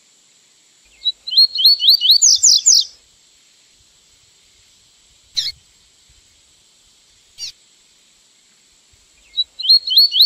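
A small songbird sings quick, whistled phrases close by.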